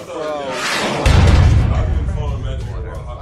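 A man shouts loudly in surprise.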